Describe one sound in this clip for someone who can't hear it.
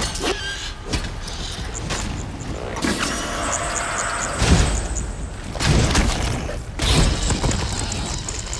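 Weapon blows strike a creature with heavy thuds.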